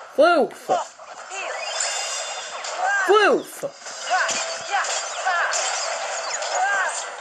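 Magical chimes and swooshing game effects ring out from a small speaker.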